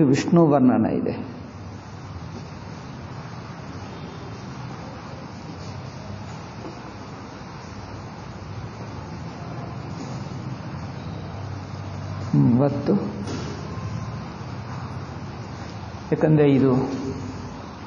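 An elderly man speaks calmly and close by, in short bursts with long pauses.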